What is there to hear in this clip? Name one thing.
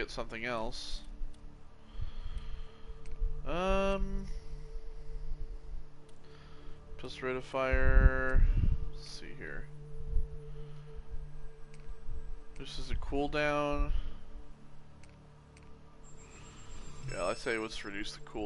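Short electronic menu tones chime.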